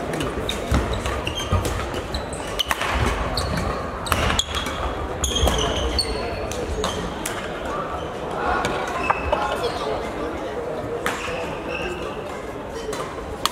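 Badminton rackets hit shuttlecocks with sharp pops in a large echoing hall.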